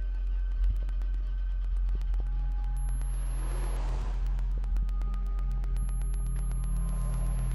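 Sharp electronic clicks crackle from small devices on the floor.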